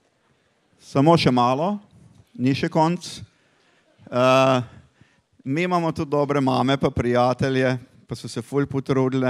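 A man speaks calmly into a microphone, heard through loudspeakers in a large echoing hall.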